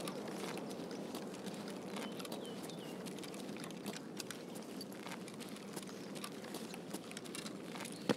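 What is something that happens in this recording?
Quick footsteps crunch on gritty pavement.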